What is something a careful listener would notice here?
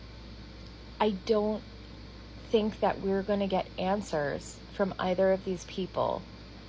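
A young woman speaks casually and close to the microphone, with pauses.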